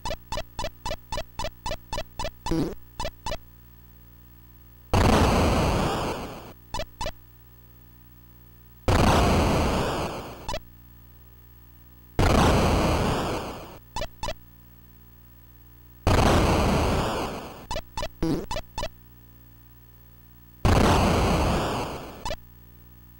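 Short electronic footstep blips tick quickly.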